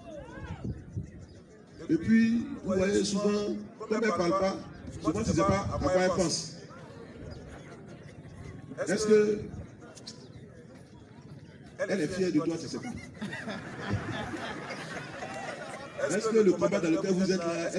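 A man speaks with animation into a microphone outdoors.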